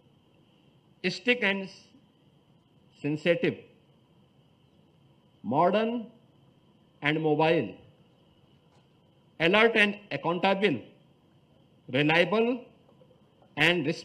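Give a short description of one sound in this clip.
A man gives a speech through a microphone and loudspeakers, in short, forceful bursts with pauses between them.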